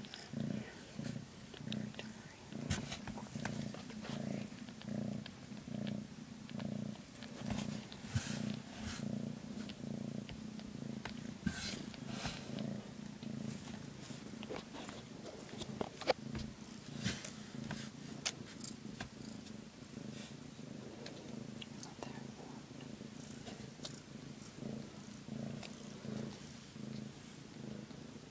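A cat purrs loudly close by in a steady rhythm.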